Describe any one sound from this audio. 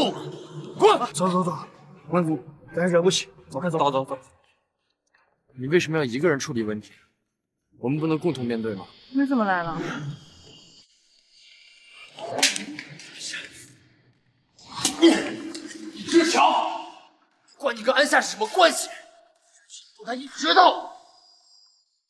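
A young man shouts angrily.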